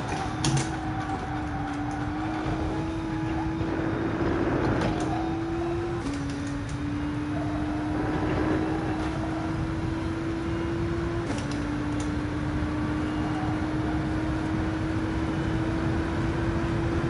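A racing car engine drones steadily, climbing in pitch and dropping at each gear change.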